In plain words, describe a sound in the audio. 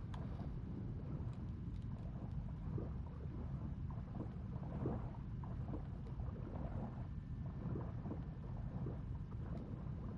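A deep muffled underwater rumble fills the space.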